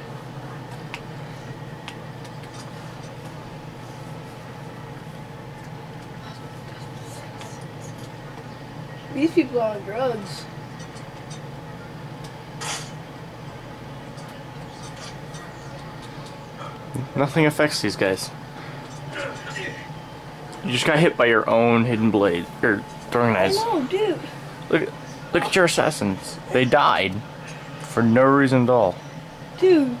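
Game sound effects play quietly from a television speaker.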